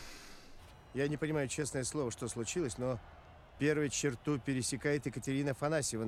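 A middle-aged man speaks quickly and with animation into a headset microphone.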